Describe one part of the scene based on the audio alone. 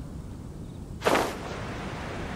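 A glider snaps open with a sharp whoosh.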